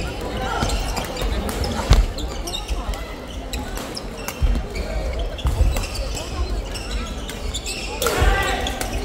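Shuttlecocks are struck with rackets in sharp, quick pops that echo in a large hall.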